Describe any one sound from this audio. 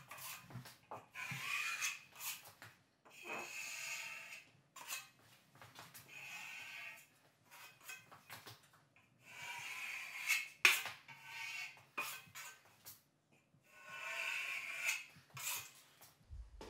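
A drywall knife scrapes joint compound across drywall in strokes.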